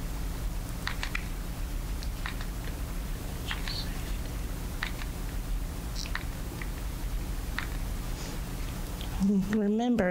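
A plastic squeeze bottle clicks and crinkles softly as it is pressed.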